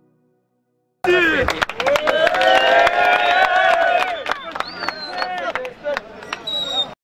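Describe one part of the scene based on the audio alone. A crowd of boys cheers and shouts loudly outdoors.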